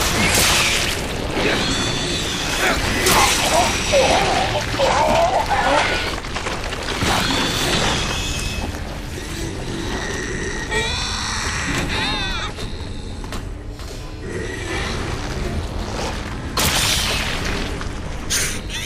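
Bodies thump and scuffle in a struggle.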